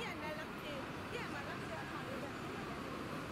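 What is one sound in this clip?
Traffic hums along a busy city street.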